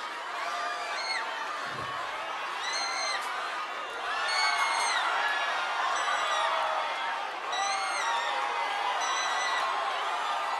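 People in a crowd whistle loudly.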